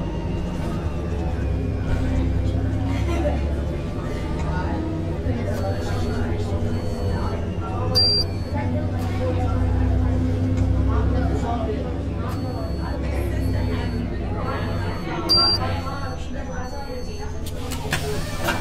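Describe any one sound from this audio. A bus engine hums and rumbles steadily as the bus drives.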